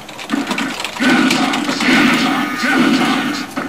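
A burst of energy explodes with a loud blast.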